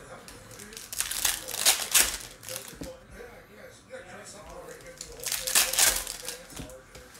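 Foil card packs crinkle and rustle as they are handled.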